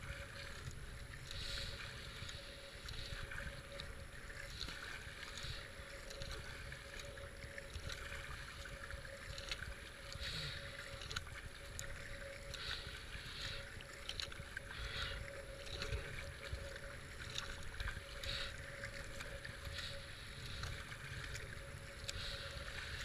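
A paddle splashes into the water in a steady rhythm.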